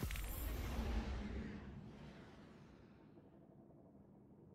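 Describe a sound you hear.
A spaceship rushes past with a loud roar that fades away.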